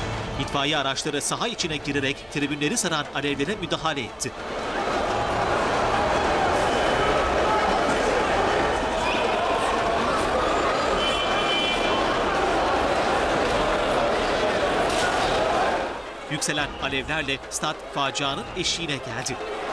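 A large crowd of fans shouts and chants outdoors.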